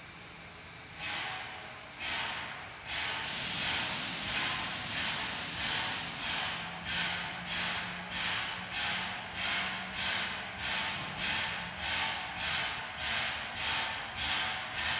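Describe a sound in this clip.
A 2-8-0 steam locomotive chuffs as it starts to pull out, its exhaust beats quickening.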